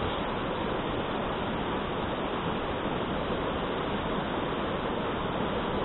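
A shallow stream rushes loudly over rocks close by.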